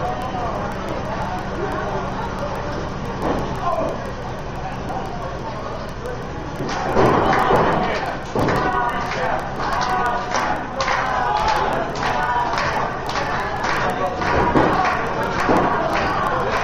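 A crowd murmurs and chatters in a large echoing room.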